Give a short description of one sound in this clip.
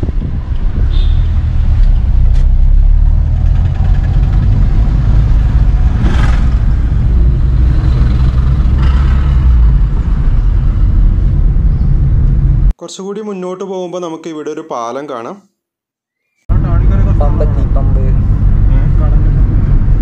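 A car engine hums steadily while driving, heard from inside the car.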